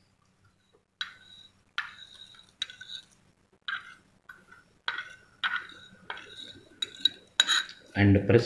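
A metal spatula scrapes and taps against a porcelain dish.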